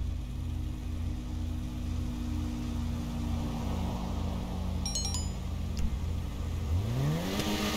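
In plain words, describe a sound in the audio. A car engine idles with a low, pulsing rumble.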